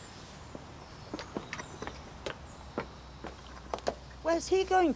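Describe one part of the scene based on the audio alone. Footsteps tap on a stone path.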